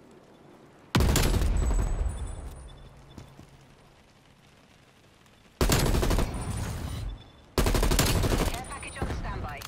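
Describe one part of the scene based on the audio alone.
A rifle fires loud bursts that echo off buildings.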